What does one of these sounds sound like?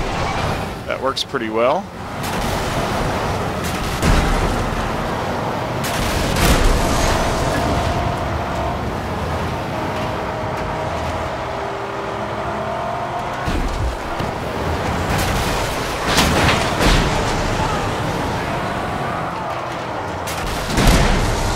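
An engine roars steadily as a vehicle races over rough ground.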